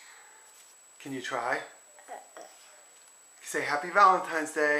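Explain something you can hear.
A little girl talks brightly and playfully, close by.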